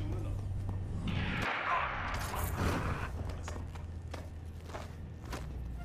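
A man grunts as he fights.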